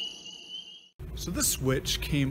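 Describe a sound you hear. A man speaks up close to the microphone in a calm, explaining voice.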